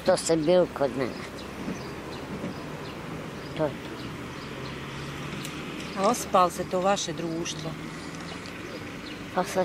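An elderly man speaks calmly in pauses, close by.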